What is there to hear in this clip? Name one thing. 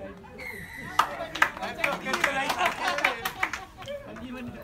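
A crowd of spectators cheers and shouts loudly.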